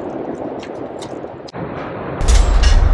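Metal carabiners clink against each other.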